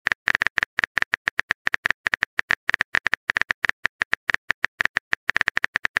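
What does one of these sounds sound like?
Keyboard taps click rapidly and evenly.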